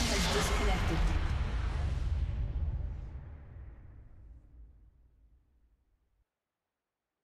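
Magic spells crackle and boom in a fight, then fade away.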